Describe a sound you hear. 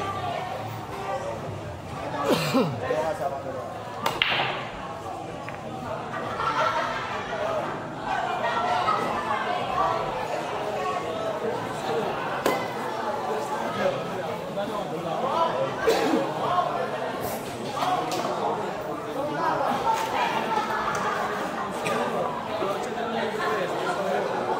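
Men chatter in the background.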